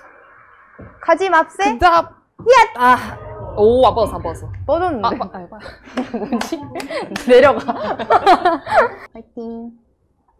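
Young women talk and exclaim with animation nearby.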